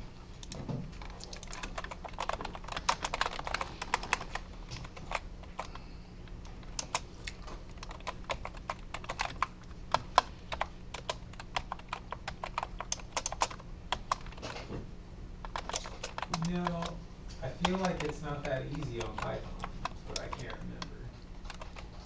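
Keyboard keys click rapidly as someone types.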